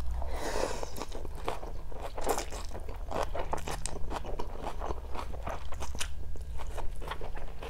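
A woman chews and smacks food close to a microphone.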